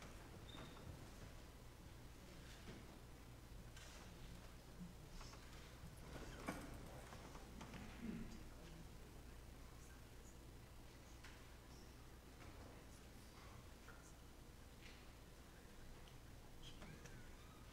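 A congregation murmurs quietly in a large echoing hall.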